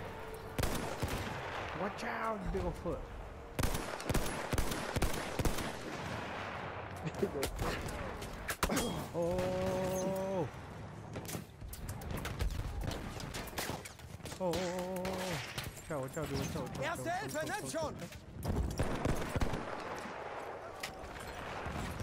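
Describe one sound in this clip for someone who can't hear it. Gunfire rattles in the distance.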